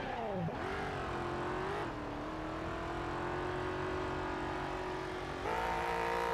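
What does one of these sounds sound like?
A video game car's engine roars as it accelerates up a ramp.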